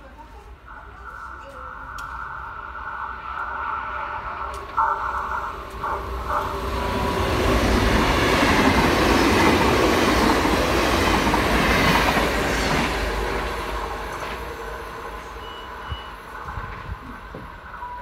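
A train rushes past close by with a loud roar that swells and then fades away.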